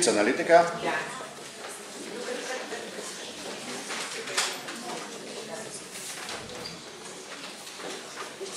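Children's footsteps shuffle across a wooden floor.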